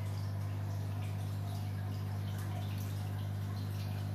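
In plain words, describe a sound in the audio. Air bubbles stream and fizz steadily in water.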